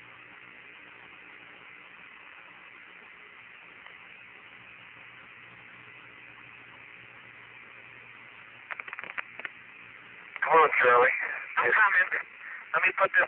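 Radio static hisses steadily.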